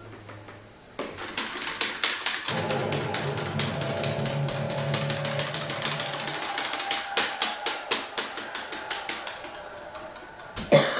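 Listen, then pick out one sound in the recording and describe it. Rock music with a steady drum beat plays through a small speaker.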